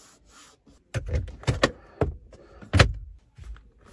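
A glove box lid clicks open.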